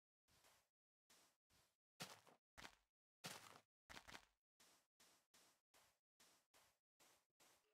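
Footsteps crunch steadily over grass and sand.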